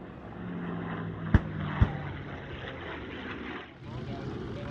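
A propeller plane's engine drones overhead.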